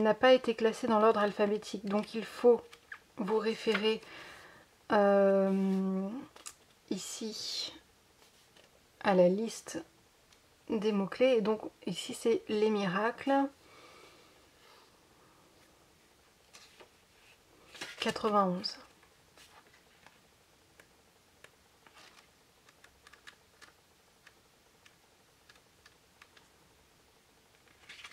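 Book pages rustle and flip softly.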